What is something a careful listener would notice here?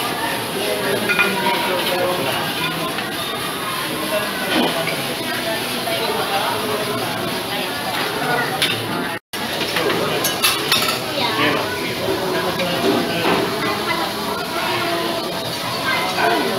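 A crowd of diners chatters in a busy, noisy room.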